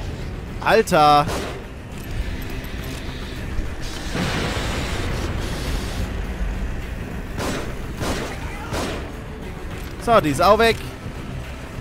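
A young man exclaims loudly in a high voice, close to a microphone.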